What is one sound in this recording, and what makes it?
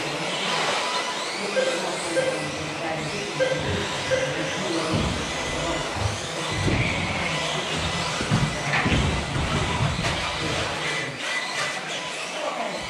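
Small electric model cars whir and whine as they race around a track in a large echoing hall.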